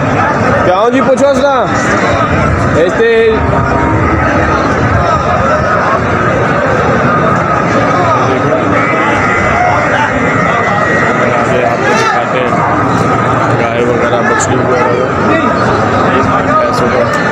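A crowd of men talk and call out all around, outdoors.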